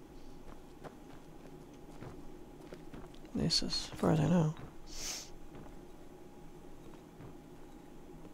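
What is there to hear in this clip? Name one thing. Footsteps thud softly on wooden floorboards.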